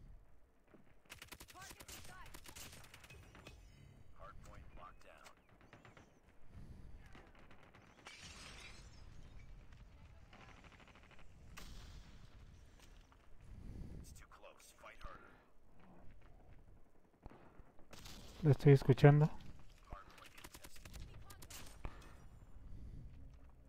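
Gunfire rattles in short bursts in a video game.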